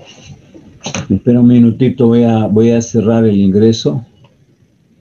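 An older man speaks close to a microphone, calmly explaining.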